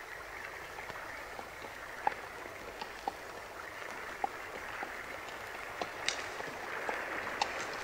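A horse's hooves thud on muddy ground.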